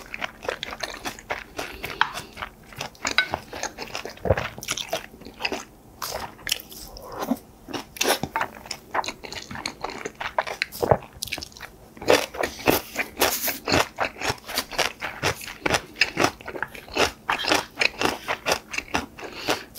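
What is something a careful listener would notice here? A spoon scrapes against a metal pan.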